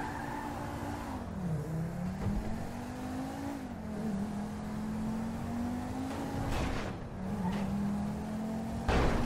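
A car engine hums and revs as it drives along, shifting up and down in pitch.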